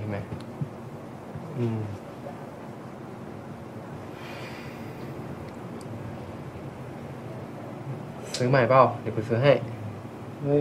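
A young man speaks softly up close.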